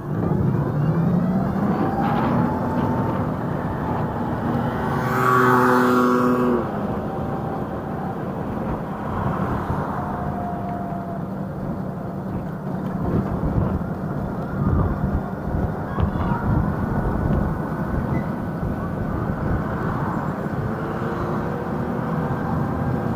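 An electric scooter motor whines as it speeds up and slows down.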